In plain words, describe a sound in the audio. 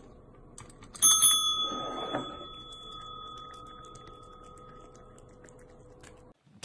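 A cat taps a desk bell, which rings out with a bright ding and slowly fades.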